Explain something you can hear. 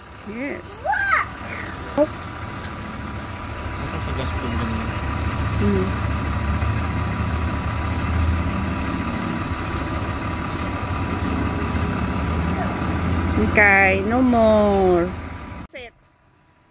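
A fire engine's diesel engine idles with a low, steady rumble nearby.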